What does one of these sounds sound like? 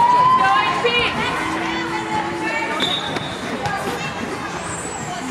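Young players call out across a large echoing indoor hall.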